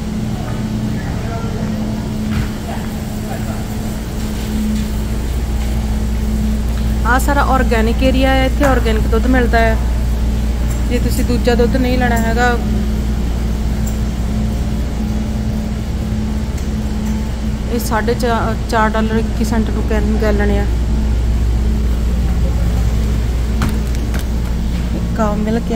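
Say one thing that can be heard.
Refrigerated display cases hum.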